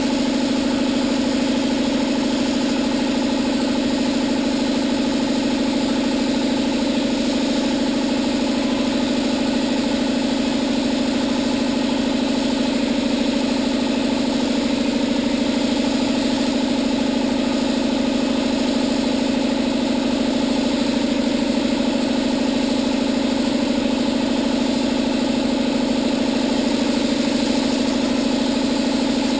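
A spray gun hisses steadily.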